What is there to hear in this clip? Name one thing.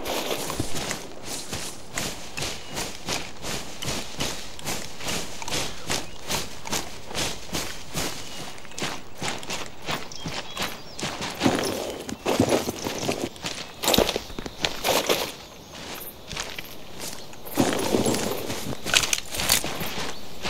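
Footsteps crunch quickly through grass and gravel.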